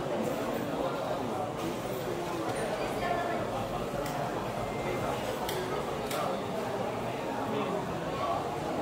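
A crowd of men chatters nearby.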